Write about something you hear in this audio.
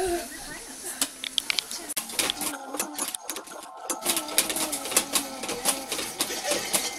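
A plastic baby jumper rattles and clicks as a baby bounces.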